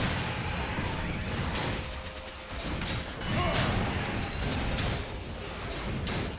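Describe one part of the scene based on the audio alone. Video game spell effects whoosh and crackle in quick bursts.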